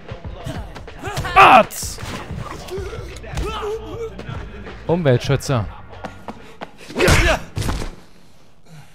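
Fists thud in a brawl.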